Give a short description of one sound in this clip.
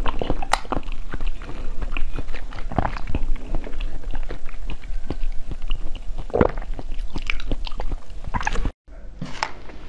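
A young woman bites and chews soft jelly close to a microphone, with wet smacking sounds.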